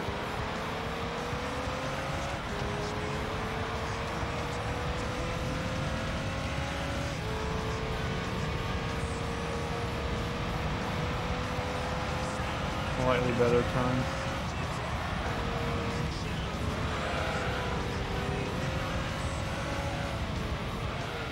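A racing car engine whines, climbing in pitch and dropping with each gear change.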